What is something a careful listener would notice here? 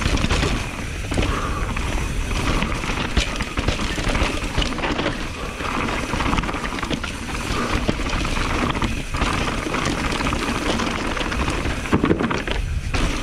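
Bicycle tyres crunch and rattle over loose rocky dirt.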